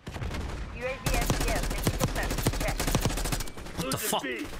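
Rapid gunshots crack.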